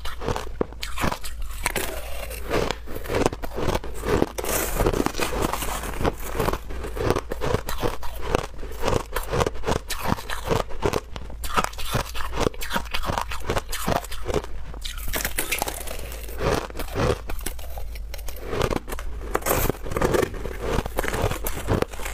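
A woman crunches shaved ice loudly and close to a microphone.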